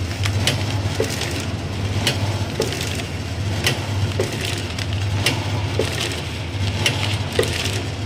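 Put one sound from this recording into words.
A vertical packing machine runs with a rhythmic clatter.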